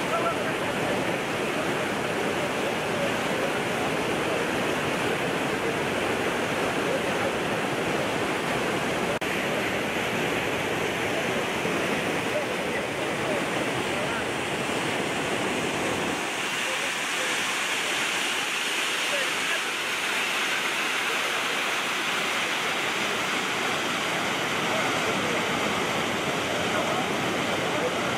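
Muddy floodwater rushes and roars loudly outdoors.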